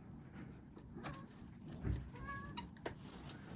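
Kittens mew softly.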